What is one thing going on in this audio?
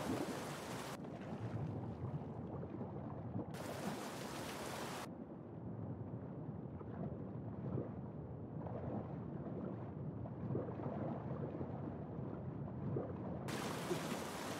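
Sound turns dull and muffled underwater as a swimmer dives.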